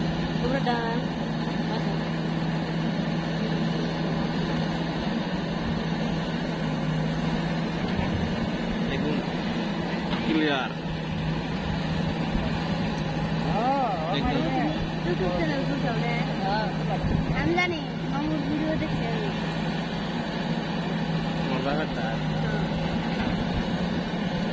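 A digger's hydraulics whine and creak as the arm swings.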